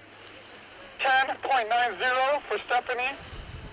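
A young woman shouts encouragement nearby.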